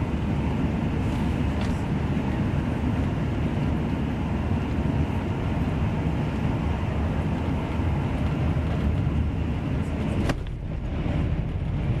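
A train rumbles and clatters steadily along the tracks, heard from inside a carriage.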